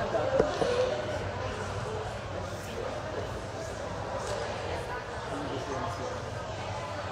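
An elderly woman speaks expressively into a microphone, heard through loudspeakers in a large echoing hall.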